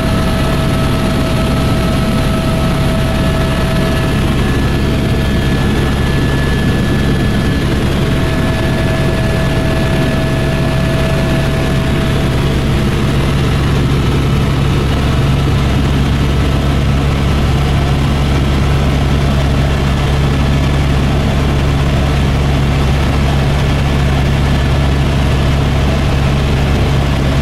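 A helicopter engine and rotor drone loudly and steadily from inside the cabin.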